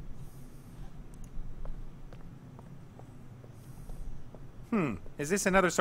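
Footsteps tap softly on a stone floor.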